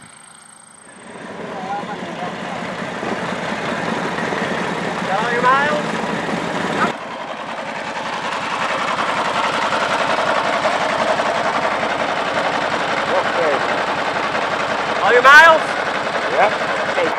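A motorcycle engine rumbles nearby.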